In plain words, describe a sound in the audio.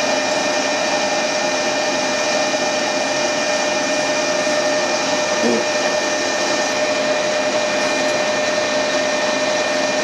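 A cutting tool scrapes and hisses against spinning metal.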